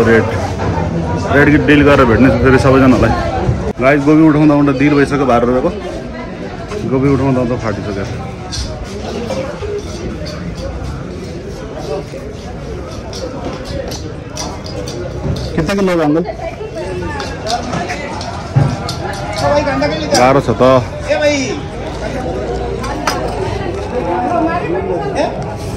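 A busy market murmurs around outdoors.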